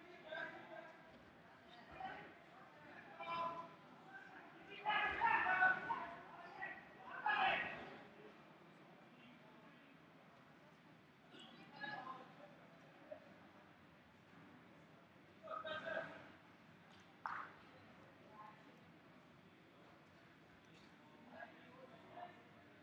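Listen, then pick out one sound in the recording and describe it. Men shout encouragement in short bursts across an echoing hall.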